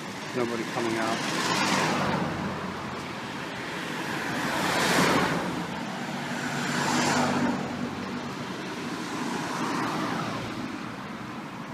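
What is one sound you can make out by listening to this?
Cars drive past one after another on a street outdoors.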